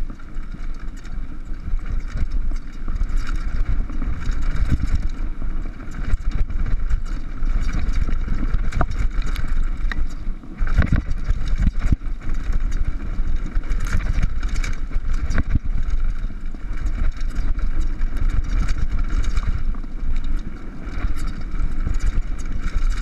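Bicycle tyres rumble and crunch over a rough dirt trail.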